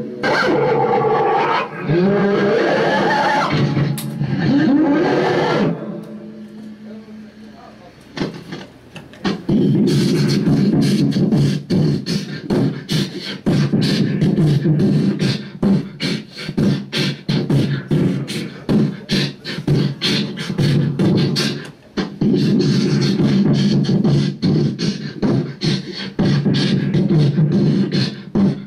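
A young man screams and growls into a microphone through loudspeakers.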